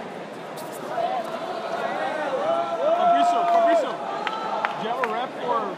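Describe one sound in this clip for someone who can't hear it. Spectators shout encouragement in a large echoing hall.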